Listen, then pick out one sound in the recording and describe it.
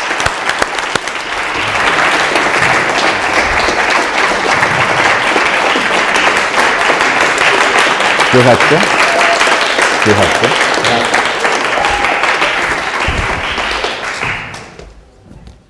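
A large audience applauds loudly in an echoing hall.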